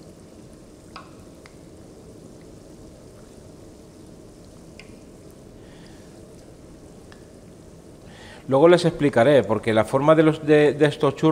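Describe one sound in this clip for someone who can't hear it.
A metal utensil scrapes in a frying pan.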